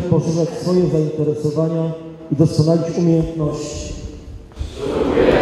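A group of young people recite an oath together in unison.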